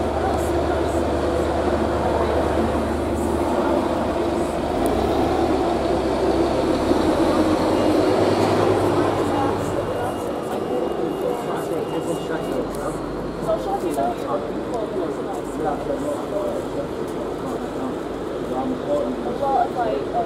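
Traffic hums along a busy street outdoors.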